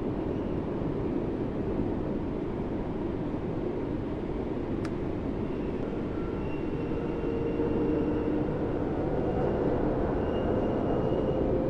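A car engine hums low and steady as the car rolls slowly.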